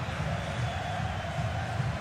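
A football is struck with a dull thud.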